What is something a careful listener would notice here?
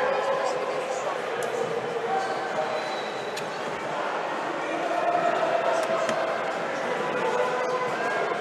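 A crowd murmurs and chatters in an echoing indoor hall.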